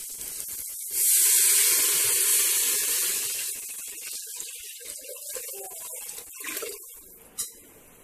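Water pours with a loud splashing rush into a metal pot.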